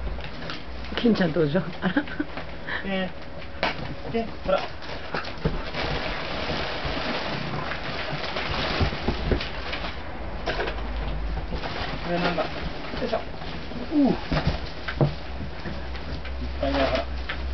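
Dogs whine and yip excitedly.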